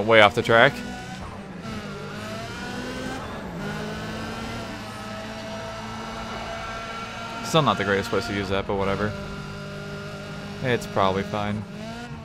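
A racing car engine roars steadily, rising and falling with gear changes.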